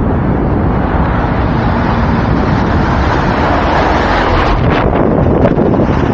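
Wind buffets the microphone loudly outdoors.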